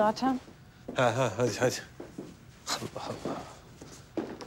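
A young man speaks in a low voice nearby.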